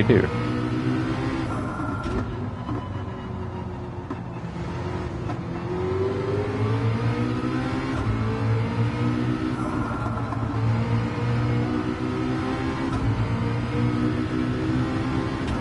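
A racing car engine roars, its pitch rising and falling with each gear change.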